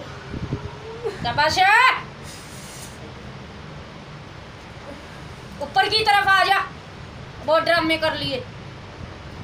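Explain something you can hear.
A woman cries out loudly in a wailing, sing-song voice, close by.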